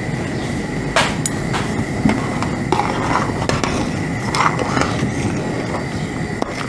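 A ladle scrapes and stirs through soup in a metal pot.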